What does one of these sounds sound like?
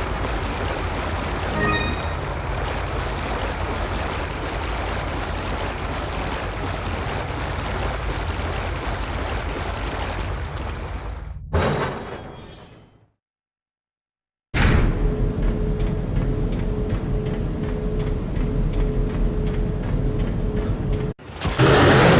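Footsteps run on a hard stone floor.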